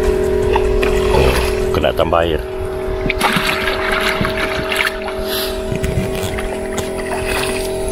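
A bucket scoops seawater with a splash.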